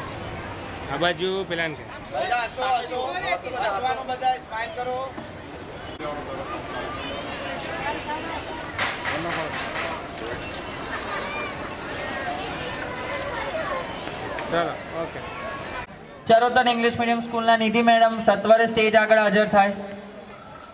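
Children chatter and call out nearby.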